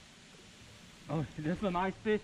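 A man speaks close by in a calm voice.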